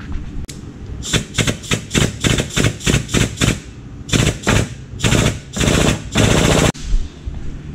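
Compressed air blows in short, sharp bursts.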